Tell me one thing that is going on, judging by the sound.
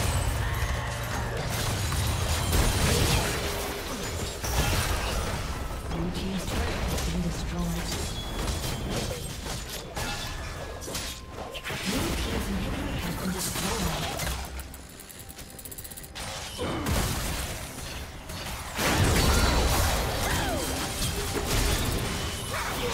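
Magic spells whoosh and blast in quick bursts during a fight.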